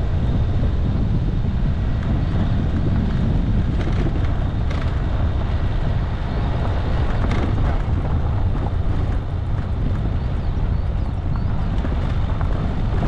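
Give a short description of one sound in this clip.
Tyres crunch over a gravel track.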